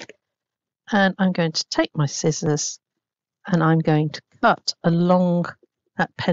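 Scissors snip through thin card.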